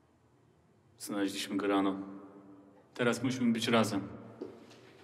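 A man speaks in a low, serious voice close by.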